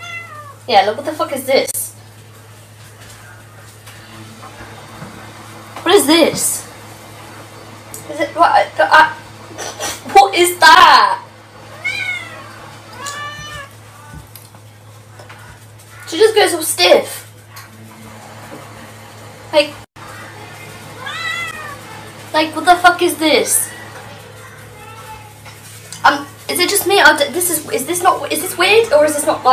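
A woman talks to a cat with animation, close by.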